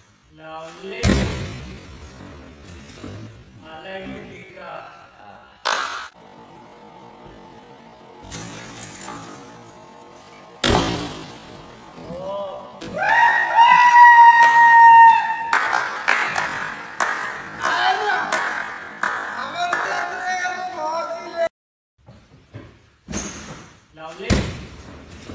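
A person lands with a heavy thud on a soft mat.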